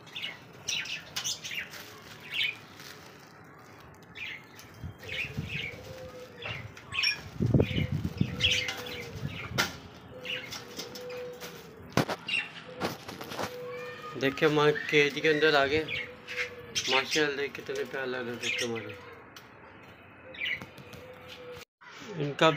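Budgerigars chirp and twitter.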